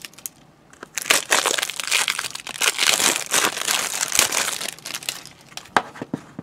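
A plastic case slides and rustles as hands handle it.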